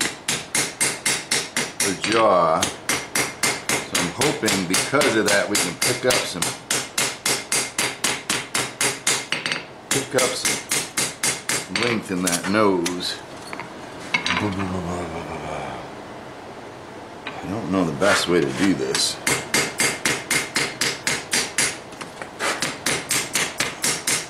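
A hammer rings in quick, steady blows on hot metal on an anvil.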